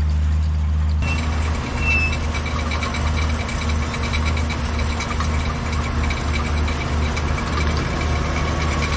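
A tractor engine rumbles close by, with a pulsing throb.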